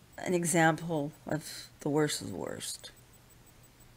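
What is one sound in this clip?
A middle-aged woman speaks close to a webcam microphone.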